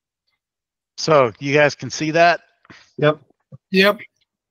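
A middle-aged man speaks calmly through an online call microphone.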